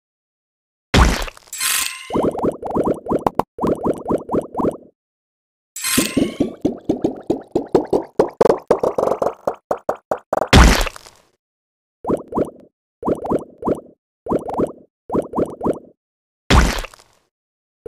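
A loud whoosh bursts now and then.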